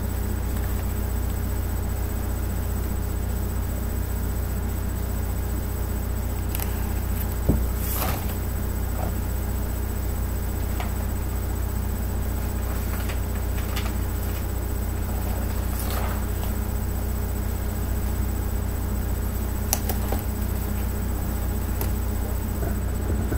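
A ceiling fan hums steadily.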